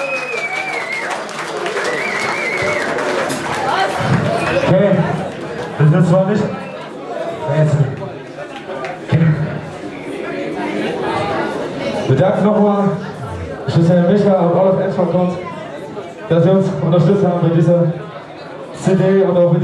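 A young man sings into a microphone through loudspeakers.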